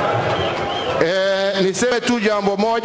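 A man speaks loudly with animation through a microphone and loudspeakers.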